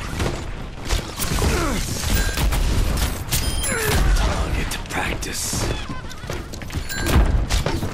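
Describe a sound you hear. A bowstring twangs as arrows are loosed in quick succession.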